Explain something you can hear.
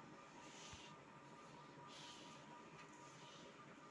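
A calf sniffs and snuffles at the floor.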